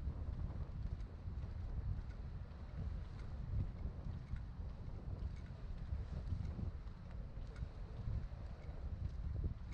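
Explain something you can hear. Wind blows and rumbles outdoors.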